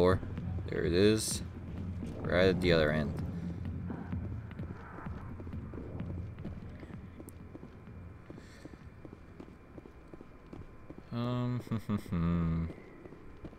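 Fast footsteps run across a hard metal floor.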